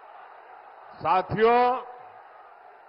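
A crowd shouts a loud, brief chant.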